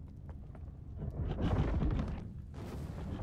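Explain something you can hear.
A weapon whooshes through the air in a fiery strike.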